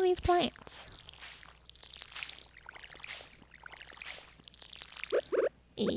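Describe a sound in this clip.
Water splashes from a watering can onto soil.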